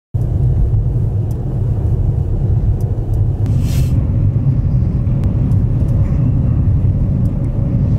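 A car engine hums with a low steady rumble while driving.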